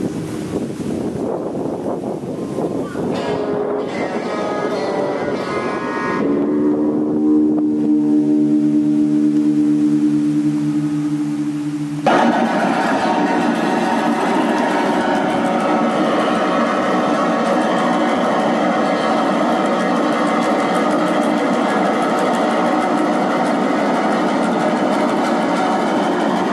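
An electric guitar plays loudly through an amplifier outdoors.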